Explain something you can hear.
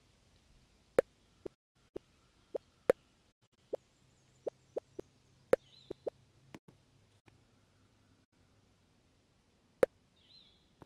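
Menu buttons click sharply now and then.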